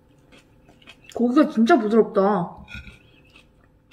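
A fork clinks and scrapes against a plate.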